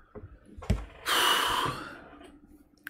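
A young man breathes out heavily.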